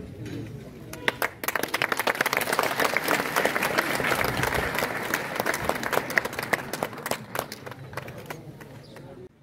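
A small group of people claps.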